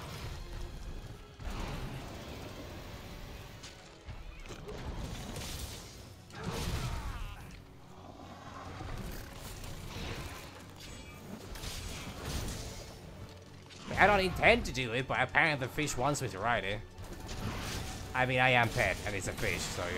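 Heavy blows thud and crunch against a huge beast's hide.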